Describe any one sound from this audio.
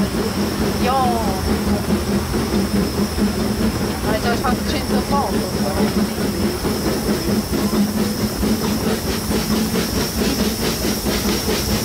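A steam train rumbles and clatters along the track.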